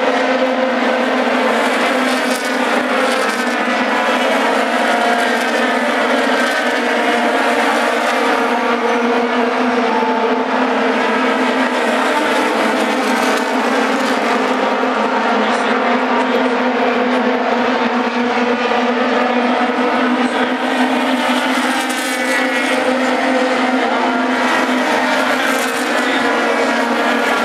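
Race car engines whine loudly as the cars speed around the track.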